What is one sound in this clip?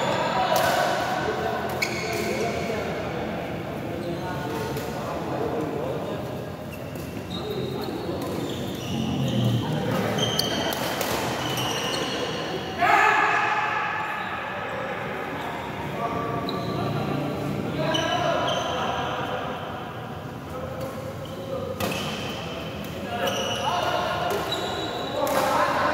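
Shuttlecocks are struck with rackets, with sharp pops in a large echoing hall.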